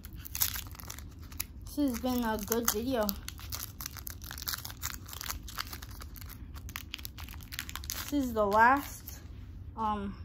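A foil card pack crinkles and tears in a boy's hands.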